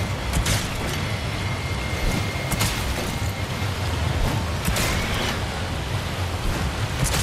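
Water splashes and churns as a large creature thrashes nearby.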